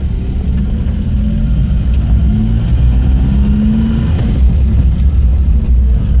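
A motorcycle engine buzzes as it passes.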